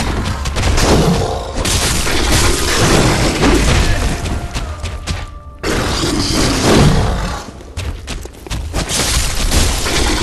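A large creature screeches and roars.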